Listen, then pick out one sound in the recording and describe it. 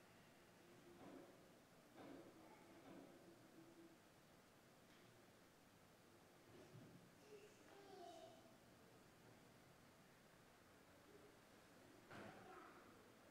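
A man speaks slowly and calmly in an echoing room.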